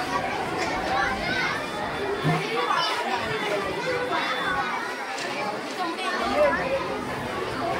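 Many children chatter in the background.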